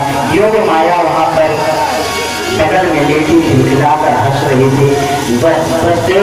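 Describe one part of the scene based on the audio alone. A large crowd sings and chants loudly close by.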